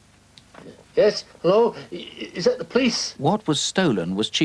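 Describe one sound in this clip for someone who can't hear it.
A man speaks into a telephone.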